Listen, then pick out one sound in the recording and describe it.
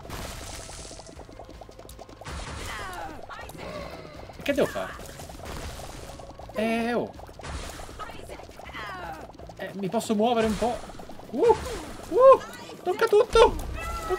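Game sound effects chirp, squelch and pop rapidly.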